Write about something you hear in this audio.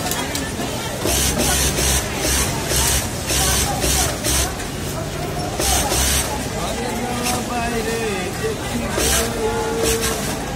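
A sewing machine whirs in short bursts as it stitches fabric.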